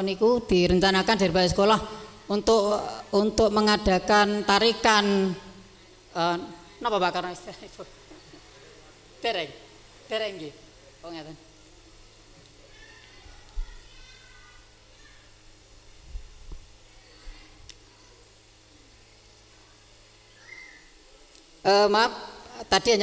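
A man speaks into a microphone over a loudspeaker, with pauses.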